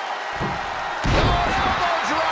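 A heavy body slams down onto a wrestling ring mat with a loud thud.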